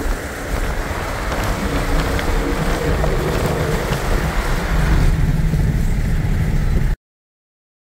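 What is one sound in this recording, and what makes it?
A car engine hums steadily while driving on a highway.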